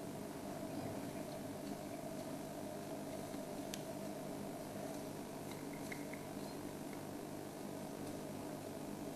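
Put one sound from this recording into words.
An elephant strips leafy branches, with twigs snapping and leaves rustling close by.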